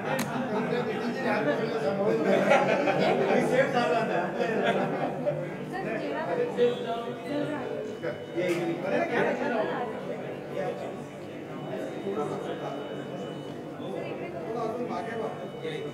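A crowd of men chatter all around, close by.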